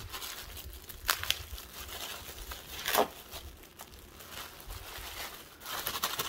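Plastic crinkles as a woman handles a wrapper.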